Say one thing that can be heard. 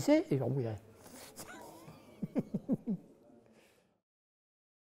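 An elderly man laughs heartily.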